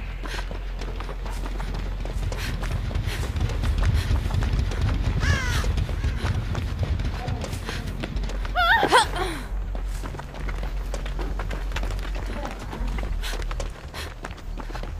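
Footsteps run quickly over grass and gravel.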